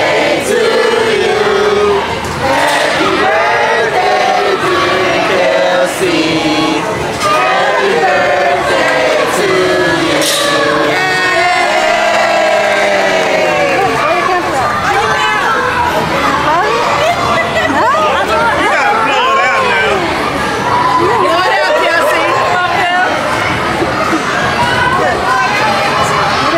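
A group of people sing together loudly nearby.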